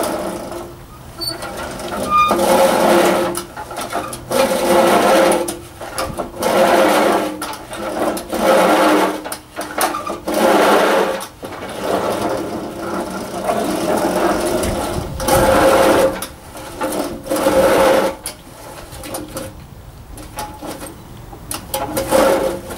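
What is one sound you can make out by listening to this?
A push mower's blades whir and clatter in bursts as it rolls back and forth over grass.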